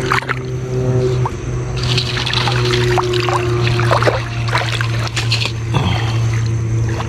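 Water splashes as hands stir through shallow muddy water.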